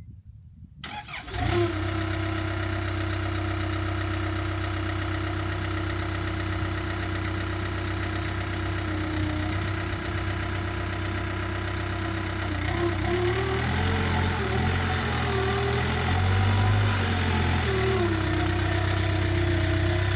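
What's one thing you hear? A tractor digger's diesel engine idles with a steady rumble.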